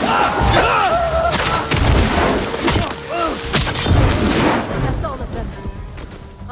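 Swords clash and ring loudly in a fight.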